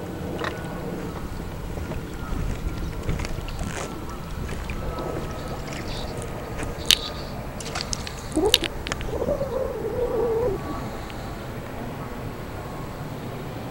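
A fishing lure splashes lightly across the water's surface.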